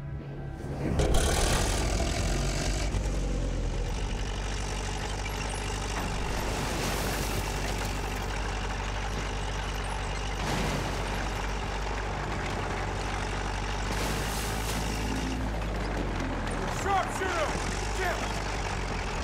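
A tank engine rumbles and its tracks clank steadily.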